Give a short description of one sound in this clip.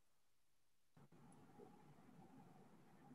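A man talks quietly through an online call.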